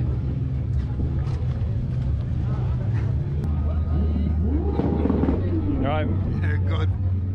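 A crowd murmurs in the background outdoors.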